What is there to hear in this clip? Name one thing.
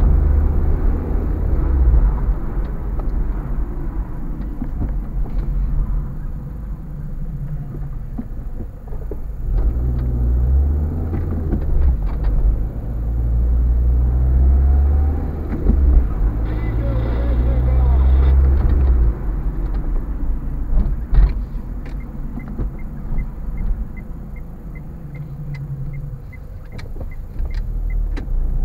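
A car engine hums low and steady from inside the car as it drives along.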